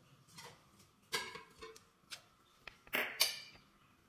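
A metal pot clanks onto a gas burner.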